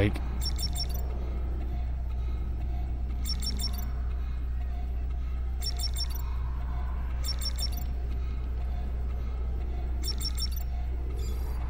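An electronic device gives short bursts of high beeping, repeating every few seconds.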